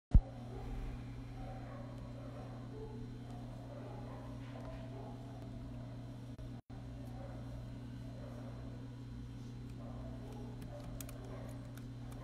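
A young woman speaks calmly and quietly, close to a phone microphone.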